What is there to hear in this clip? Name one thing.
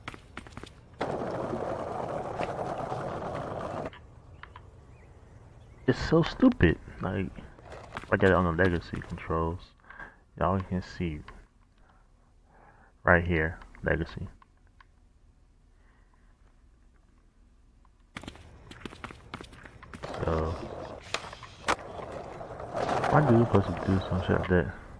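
Skateboard wheels rumble across wooden boards.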